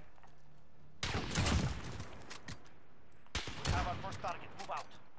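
A rifle fires loud, booming shots that echo.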